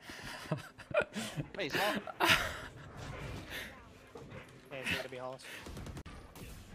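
A young man laughs into a close microphone.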